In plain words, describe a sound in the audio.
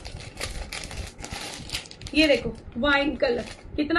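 Plastic packaging crinkles and rustles in a woman's hands.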